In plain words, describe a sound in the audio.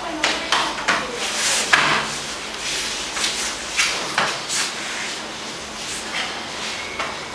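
Two grapplers in cotton uniforms scuffle and thump on a mat.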